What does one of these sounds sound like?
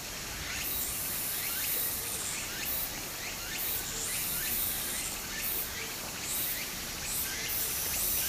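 Shallow water trickles and babbles over stones.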